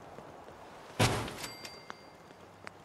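A loud metallic clunk sounds as a metal locker is set down.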